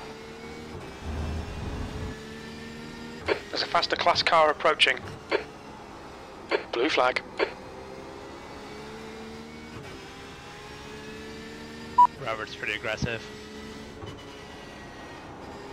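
A racing car engine drones steadily, its pitch shifting with the gears.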